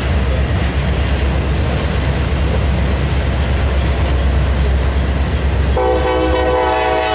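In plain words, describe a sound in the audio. A freight train rolls past with a steady, heavy rumble and clatter of wheels on the rails.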